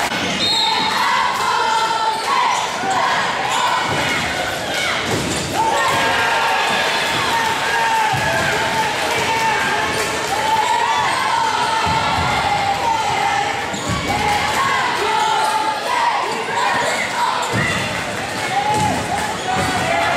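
A group of young women chant loudly in an echoing gym.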